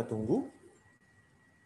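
A man speaks briefly through a computer microphone.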